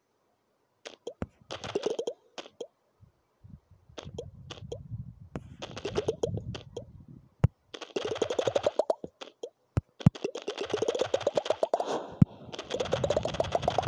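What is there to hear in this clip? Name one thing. Quick electronic pops rise in pitch, over and over.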